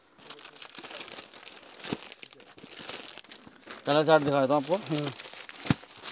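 Cloth rustles and crinkles as fabric is handled.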